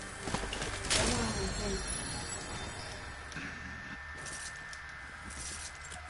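A short chime sounds as an item is picked up.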